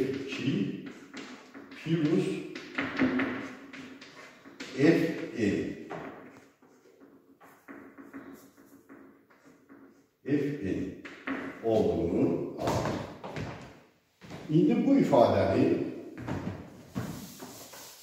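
An elderly man lectures calmly in an echoing room.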